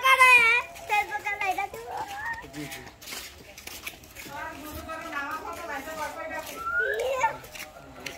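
Young children talk and shout excitedly nearby.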